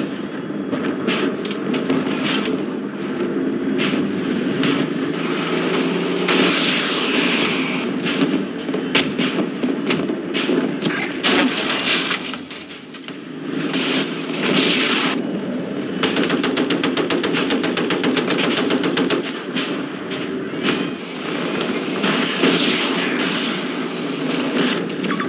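Heavy gunfire and explosions boom repeatedly.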